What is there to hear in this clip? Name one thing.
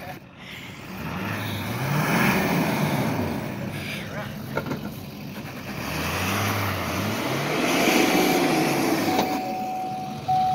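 Truck tyres spin in loose sand.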